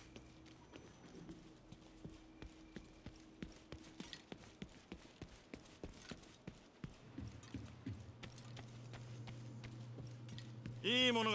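Footsteps fall at a steady walking pace on hard ground.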